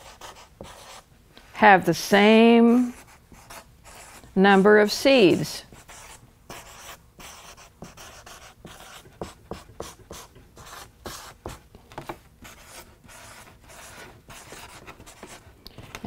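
A marker squeaks on paper.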